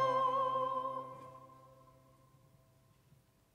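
A choir sings a sustained chord that rings out and fades in a large echoing hall.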